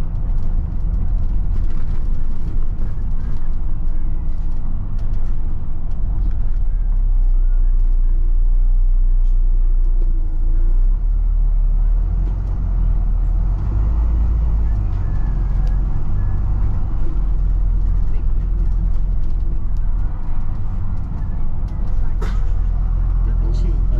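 A vehicle's engine rumbles steadily close by as it drives.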